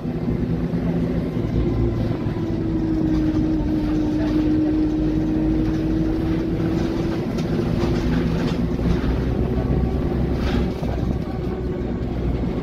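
A bus engine hums and drones steadily, with a whining tone.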